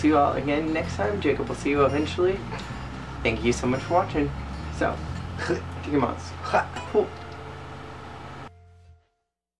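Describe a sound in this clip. A second young man talks close by.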